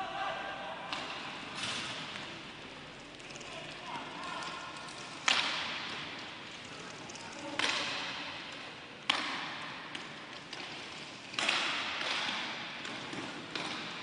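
Skate wheels roll across a hard floor.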